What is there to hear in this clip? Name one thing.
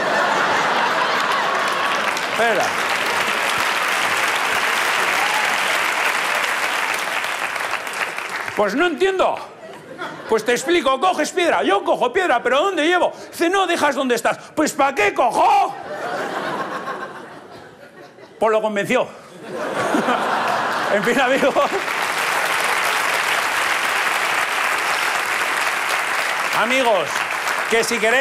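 A large audience laughs.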